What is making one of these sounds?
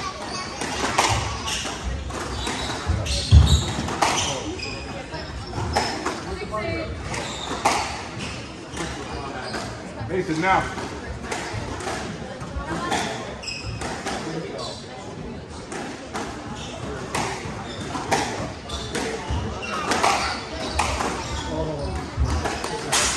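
Sneakers squeak on the wooden court floor.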